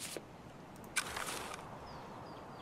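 A rifle rattles as it is raised to aim.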